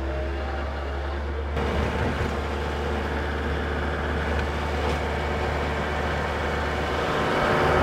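A rotary tiller churns through soil.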